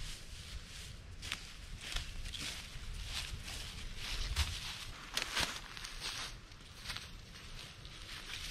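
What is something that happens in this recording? Footsteps crunch on dry leaves and grass.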